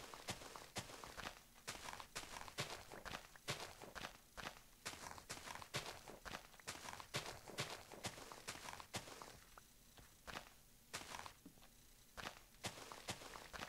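A shovel digs into dirt with quick, crunchy scrapes.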